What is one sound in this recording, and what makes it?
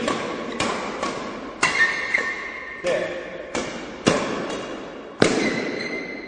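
A racket strikes a shuttlecock again and again with sharp pops that echo in a large hall.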